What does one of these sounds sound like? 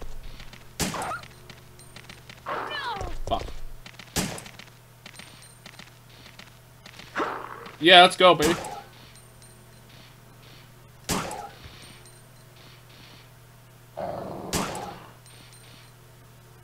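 Gunshots ring out sharply in a hard, echoing space.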